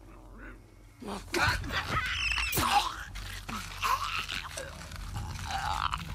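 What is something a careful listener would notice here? Bodies scuffle and thud in a struggle.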